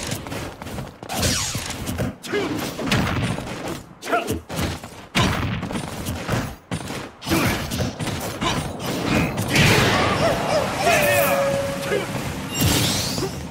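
Fighting game hits thud and crackle in quick bursts.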